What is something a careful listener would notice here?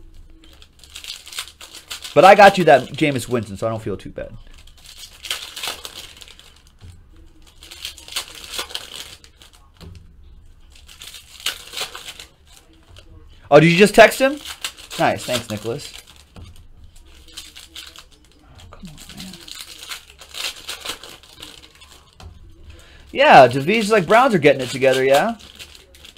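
Foil card wrappers crinkle and tear as they are opened.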